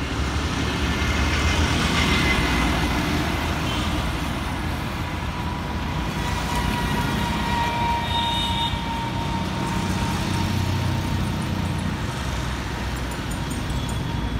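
Motorcycles and scooters pass close by.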